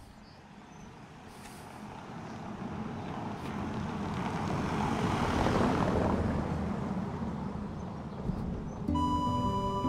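A car drives slowly past over cobblestones.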